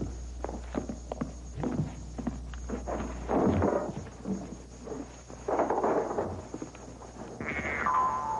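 Metal clicks and clanks as a heavy safe door is worked open.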